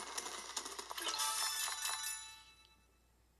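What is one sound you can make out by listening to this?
Bright game chimes ring out in a rising series.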